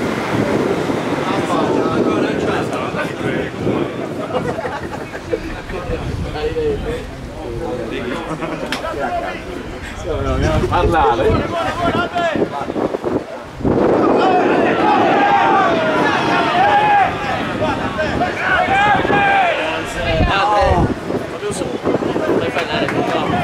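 Spectators chatter and call out nearby, outdoors.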